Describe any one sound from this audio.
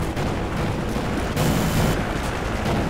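A grenade explodes nearby with a dull boom.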